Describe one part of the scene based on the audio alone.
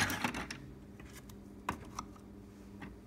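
A coffee pod rustles and clicks into a coffee maker.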